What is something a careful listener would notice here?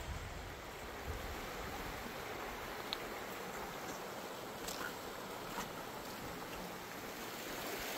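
A shallow river rushes over rocks.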